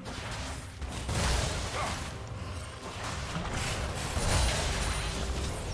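Fiery magic blasts whoosh and crackle in a video game.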